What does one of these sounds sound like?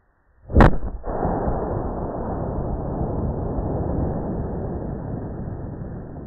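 Firework sparks crackle and hiss loudly as they shoot out.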